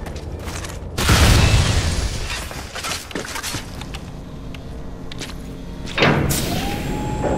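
Heavy blasts boom loudly.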